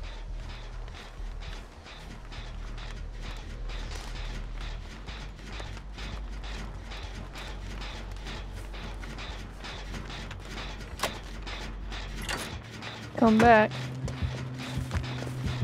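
Footsteps rustle through tall grass at a steady pace.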